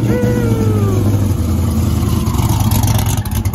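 A turbocharger whistles and spools down.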